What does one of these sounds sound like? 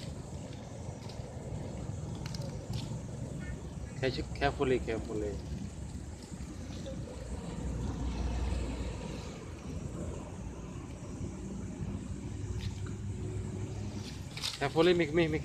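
A monkey rustles dry leaves on the ground.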